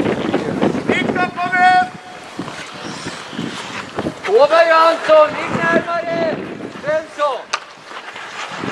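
Men shout to each other across the ice, outdoors and far off.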